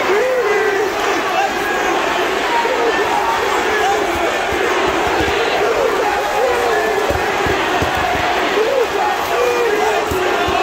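A large crowd roars and chants loudly in an echoing arena.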